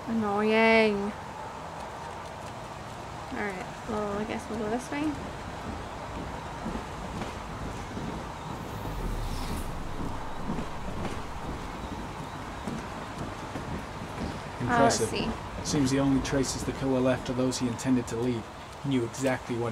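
Heavy rain falls.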